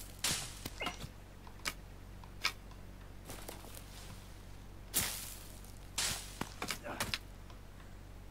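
Dry leaves and twigs rustle in short bursts as they are gathered.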